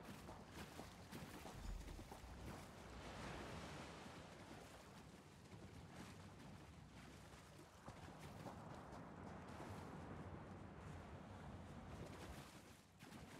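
Water splashes and sloshes as a swimmer moves through it.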